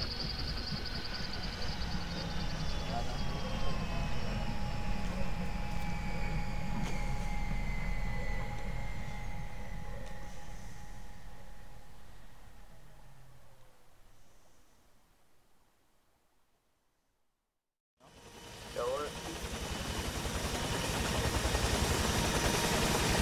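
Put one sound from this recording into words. A helicopter's engine whines steadily.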